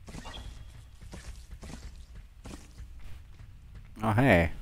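Footsteps tread softly on the ground.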